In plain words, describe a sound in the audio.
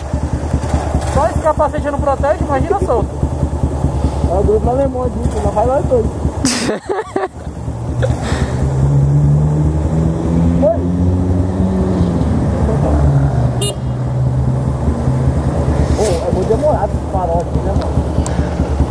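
A motorcycle engine idles with a low, steady rumble.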